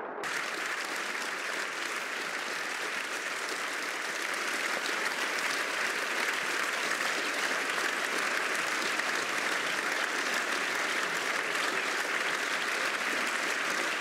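A large crowd applauds loudly and steadily in a big echoing hall.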